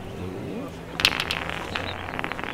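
Glass marbles clack together sharply as one marble strikes a cluster and scatters it.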